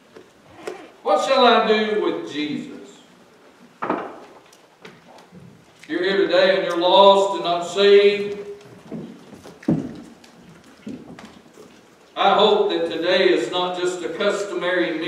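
A middle-aged man preaches with emphasis into a microphone, in bursts with pauses.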